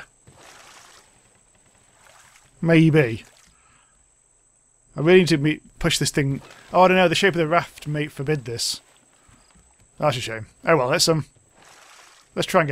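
A paddle splashes softly in water.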